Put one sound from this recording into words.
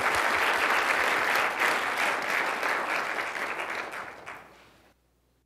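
An audience applauds in a large hall and the applause fades away.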